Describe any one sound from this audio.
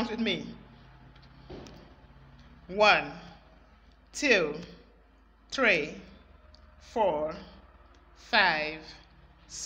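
A woman counts aloud slowly and clearly, one word at a time.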